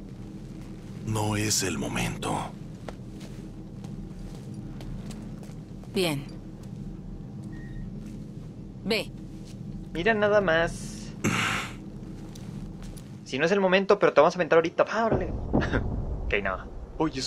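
A man speaks in a low, rough voice.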